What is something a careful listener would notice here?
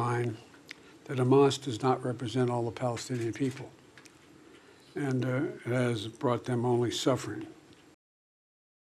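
An elderly man speaks calmly and haltingly into a microphone.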